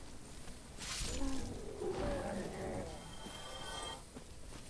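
A giant insect shrieks and screeches as it dies.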